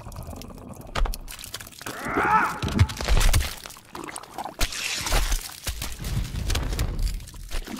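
Blades slash and strike flesh with sharp, wet impacts.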